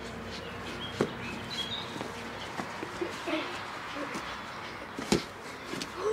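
A foot kicks a ball with a dull thud.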